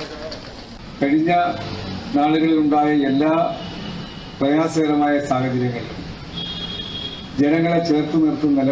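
A middle-aged man speaks loudly into a microphone through a loudspeaker.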